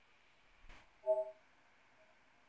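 A short bright chime rings.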